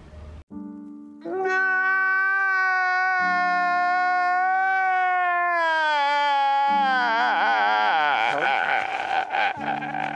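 A man sobs and wails loudly.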